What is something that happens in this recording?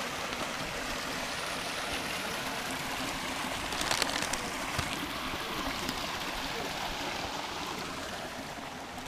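A small stream trickles and gurgles close by, then fades away.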